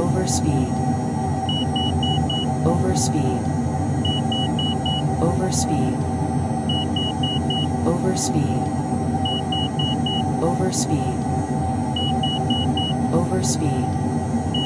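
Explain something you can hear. Jet engines drone steadily inside an aircraft cabin.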